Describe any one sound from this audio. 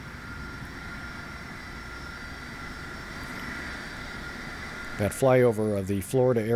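A jet airliner's engines whine steadily as it taxis nearby.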